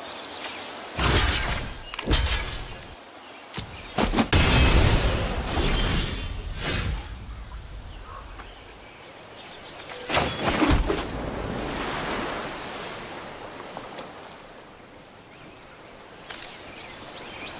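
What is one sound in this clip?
Game sound effects whoosh and thud as cards are played and attack.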